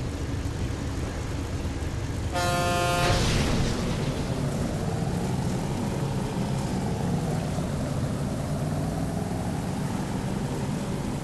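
Water splashes and rushes under a speeding boat.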